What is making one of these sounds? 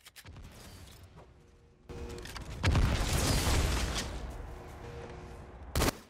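Gunfire and explosions from a video game play through a television speaker.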